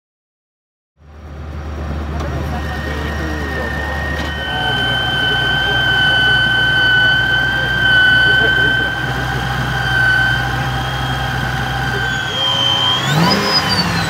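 A supercharged V8 idles with a high supercharger whine.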